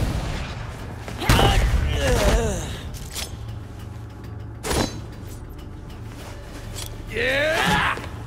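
Fast swooshes of strikes cut the air.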